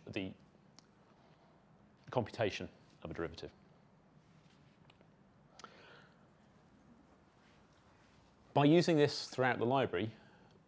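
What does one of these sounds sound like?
A middle-aged man lectures through a microphone in a room, pausing between phrases.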